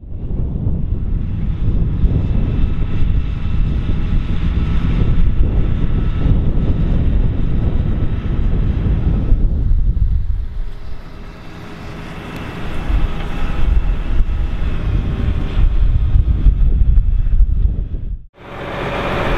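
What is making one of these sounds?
A tractor engine rumbles loudly as it drives across a field.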